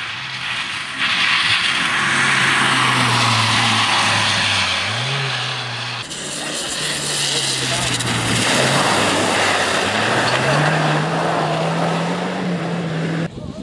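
Tyres splash and hiss through wet slush.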